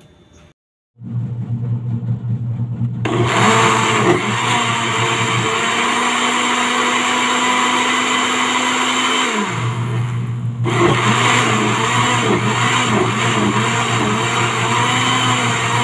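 A blender motor starts and whirs loudly and steadily.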